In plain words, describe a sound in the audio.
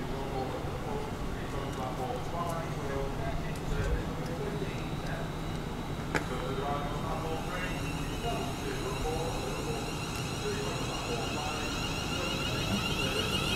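An electric train hums while standing at a platform.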